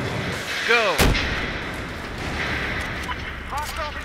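An explosion booms loudly in a game.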